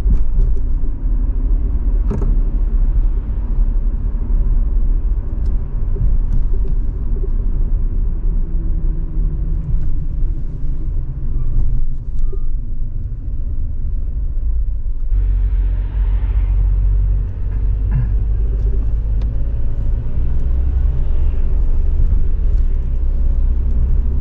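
Tyres roll and rumble on the road surface.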